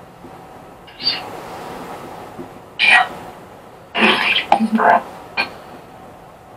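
A middle-aged woman speaks softly nearby in short bursts.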